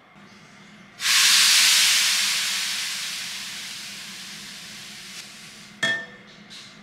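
A hot pan hisses loudly as it is set on a damp cloth, slowly fading.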